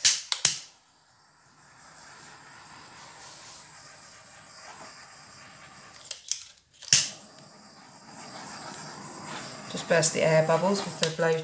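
A small gas torch hisses steadily.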